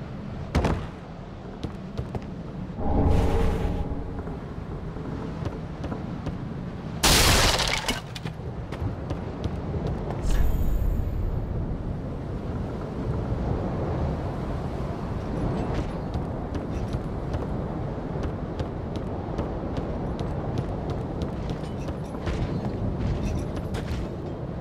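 Armored footsteps clank on creaking wooden planks.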